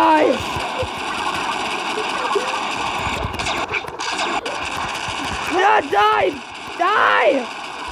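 Laser guns fire in quick bursts.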